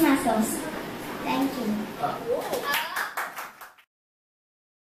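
A young girl speaks into a microphone.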